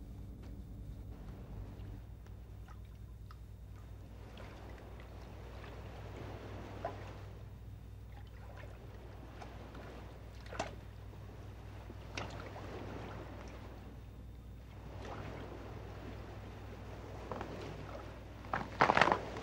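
Water laps and splashes gently outdoors.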